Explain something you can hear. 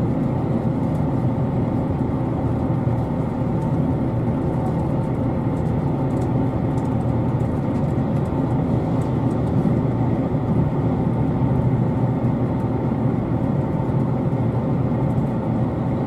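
A train rumbles steadily along the tracks, heard from inside the carriage.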